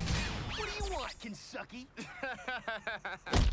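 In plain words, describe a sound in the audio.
A man laughs loudly and mockingly.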